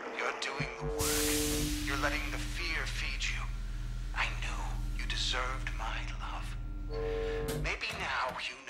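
Gas hisses loudly as it sprays into a small chamber.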